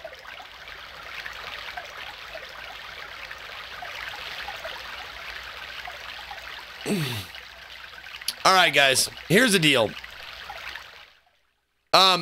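Water swirls and ripples steadily.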